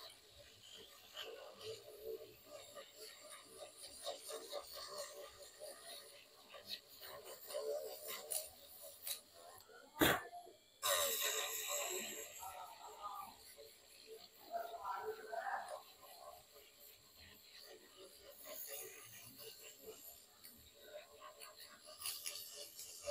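A small tool scrapes and grinds against metal in short bursts.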